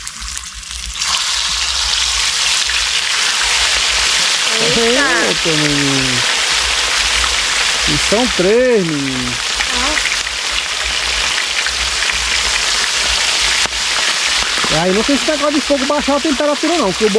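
Fish sizzles loudly in hot oil.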